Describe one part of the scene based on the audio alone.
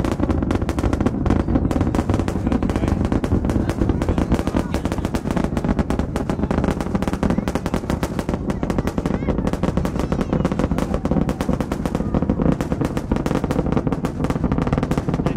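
A rocket engine roars and crackles in a deep, steady rumble.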